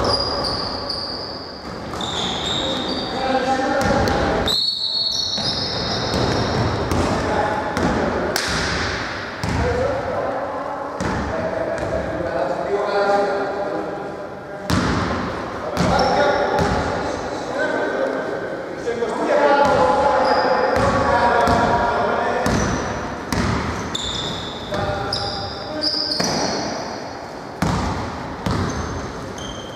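Young men shout across a large echoing hall.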